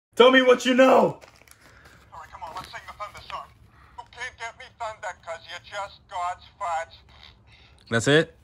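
A young man speaks with animation close by.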